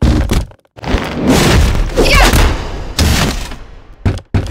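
Heavy punches and kicks thud and smack in a fight.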